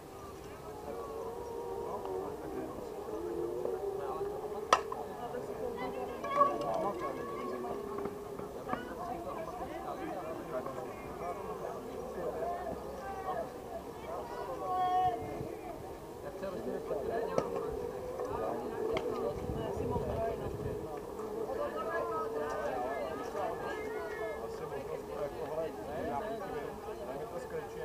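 Men talk and call out across an open field.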